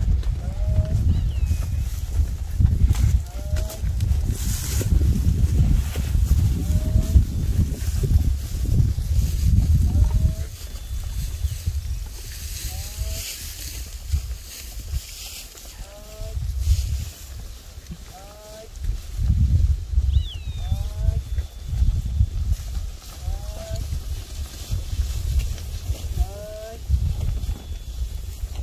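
Cattle hooves trample through dry grass.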